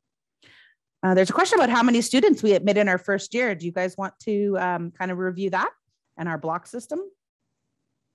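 A woman speaks clearly through a headset microphone in an online call.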